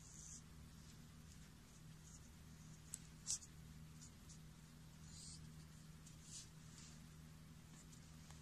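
A brush pen scratches softly across paper.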